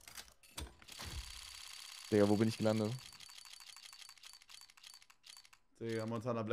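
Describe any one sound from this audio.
A game's spinning reel ticks rapidly.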